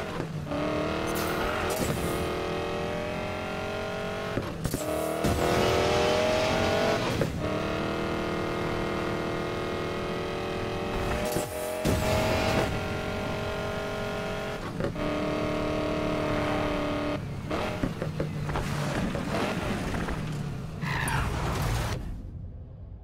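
A car engine roars at high revs, shifting gears as it speeds up.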